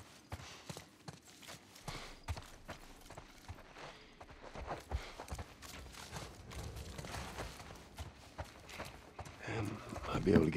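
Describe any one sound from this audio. Footsteps walk slowly across a floor.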